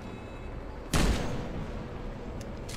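A rifle fires a single loud shot that echoes.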